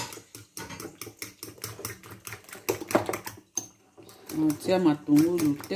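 A fork clinks and scrapes against a bowl while beating eggs.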